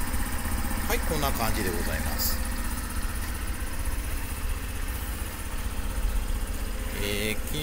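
A small motorcycle engine idles with a steady low putter.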